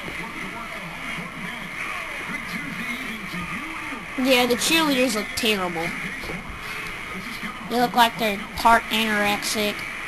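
A crowd cheers and murmurs in a large arena, heard through a television speaker.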